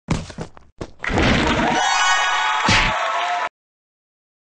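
A short, cheerful victory jingle plays.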